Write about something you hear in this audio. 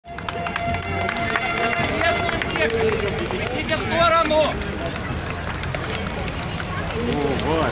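People in a crowd shout and sing out loud.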